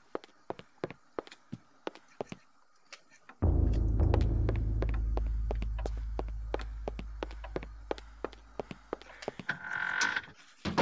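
Footsteps knock on a wooden floor at a steady pace.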